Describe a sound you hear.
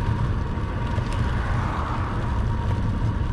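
A car passes by on the road.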